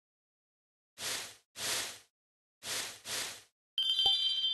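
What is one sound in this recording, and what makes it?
Short whooshing sound effects play in the game.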